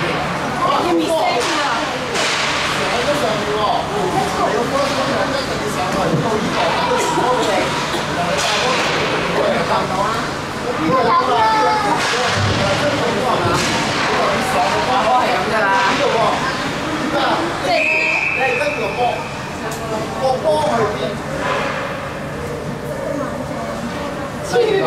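Children shout and call out in a large echoing rink.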